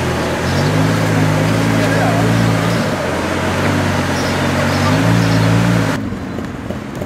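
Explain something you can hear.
A sports car engine revs loudly in short bursts.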